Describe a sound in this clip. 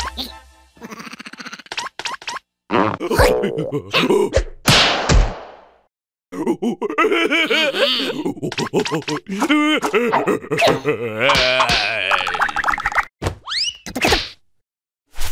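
A cartoon creature squeals and babbles in a high, squeaky voice.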